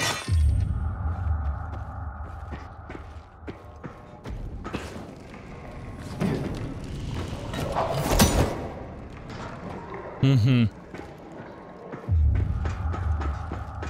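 Footsteps clang on a metal grate floor.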